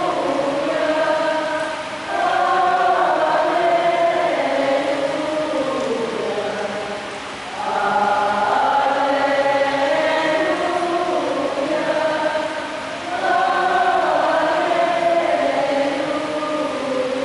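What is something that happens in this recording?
A middle-aged man chants slowly in long held notes through a microphone, echoing in a large hall.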